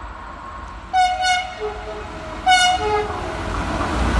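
A train horn sounds twice in short blasts.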